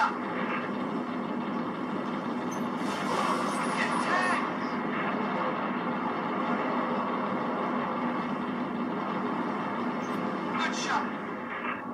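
Spaceship engines roar steadily.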